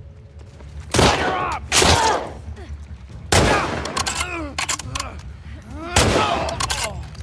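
Rifle shots boom and echo in a large hollow space.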